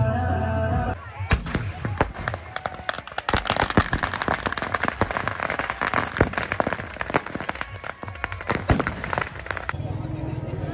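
Fireworks crackle and bang rapidly outdoors.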